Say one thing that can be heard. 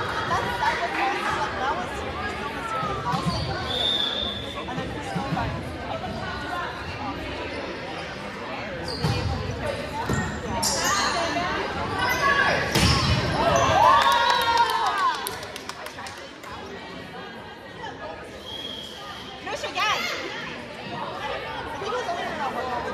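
Young women call out and cheer in a large echoing gym.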